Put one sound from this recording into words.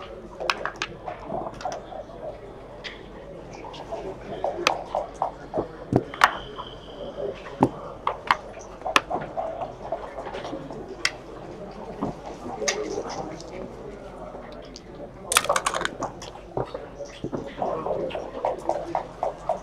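Dice rattle in a cup and tumble onto a board.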